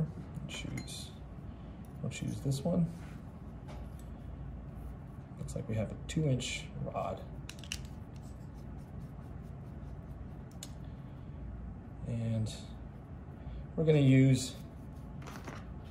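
Small metal tools click and tap against each other.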